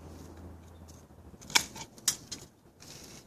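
Pruning shears snip through a leafy twig.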